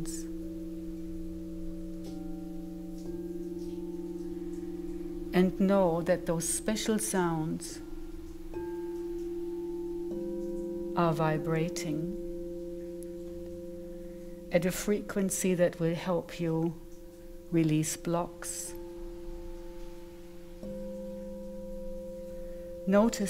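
Crystal singing bowls ring with steady, layered humming tones.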